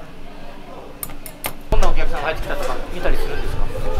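A knife taps on a cutting board.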